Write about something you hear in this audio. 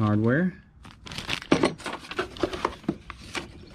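Paper rustles and flaps as it is handled.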